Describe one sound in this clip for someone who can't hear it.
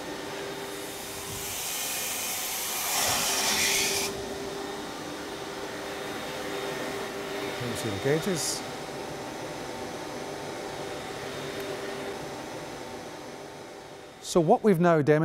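Water rushes and hisses through pipes.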